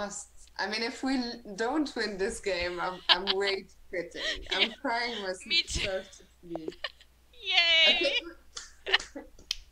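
Two women laugh loudly.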